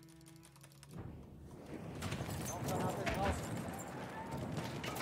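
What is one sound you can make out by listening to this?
Gunfire and explosions boom from a game.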